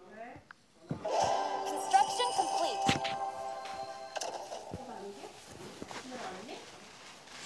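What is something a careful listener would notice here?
A game plays a bright chiming effect with music.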